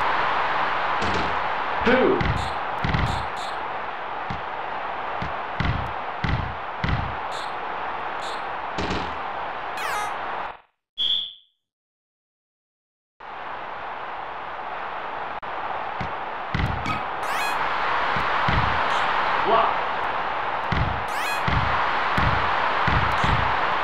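A basketball bounces on a wooden court in a steady dribble.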